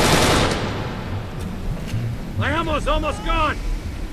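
A rifle fires a few sharp shots.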